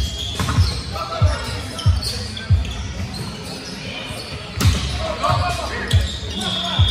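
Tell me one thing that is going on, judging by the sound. Players' sneakers squeak on the court.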